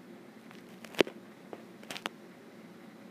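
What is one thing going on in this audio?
Socked feet thump and shuffle on a hard floor.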